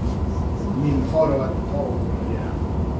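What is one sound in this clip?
A man speaks briefly and calmly, a little away from the microphone.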